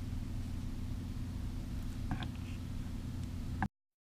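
A plastic tape reel clicks as it is fitted onto a spindle.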